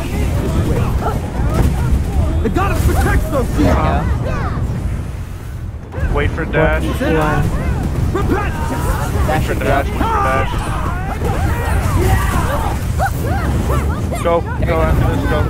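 Magic blasts boom and crackle in a fierce fight.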